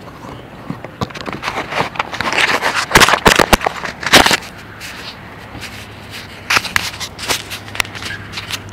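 Fabric rubs and rustles loudly against the microphone.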